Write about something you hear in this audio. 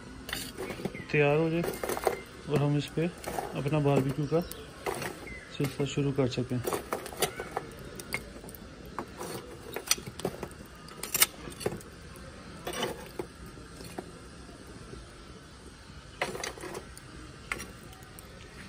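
Metal tongs clink and scrape against charcoal.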